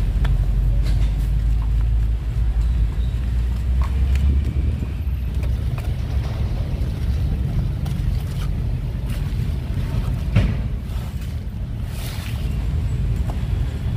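A metal tool scrapes and picks at dry soil and roots.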